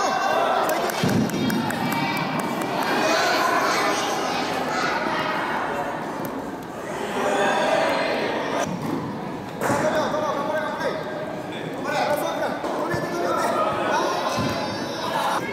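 A ball is kicked on a hard indoor floor.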